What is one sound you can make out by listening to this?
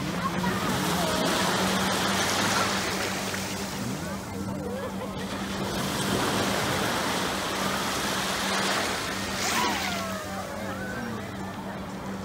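A little girl squeals and babbles.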